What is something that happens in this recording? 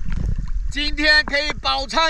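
Water splashes around a swimmer at the surface.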